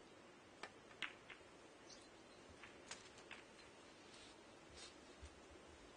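Billiard balls click against each other and knock on the cushions.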